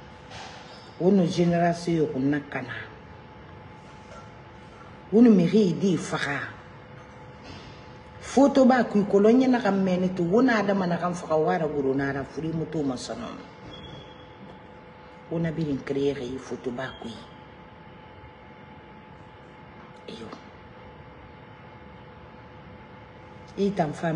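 A middle-aged woman speaks with animation and pauses into a close microphone.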